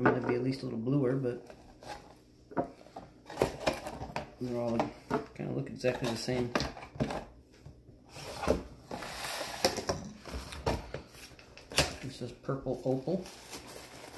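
A small cardboard box is opened and rustles.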